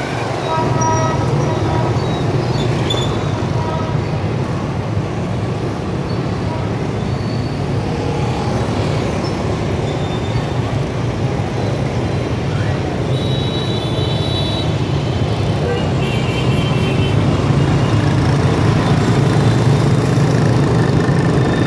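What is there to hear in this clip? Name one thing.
Motorbike engines hum and buzz steadily in busy street traffic.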